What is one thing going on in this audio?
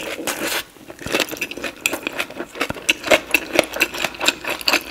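A woman chews wetly and smacks her lips close to a microphone.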